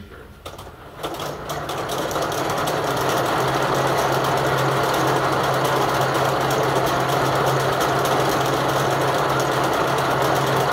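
A machine starts up and spins faster into a loud, steady whirring clatter.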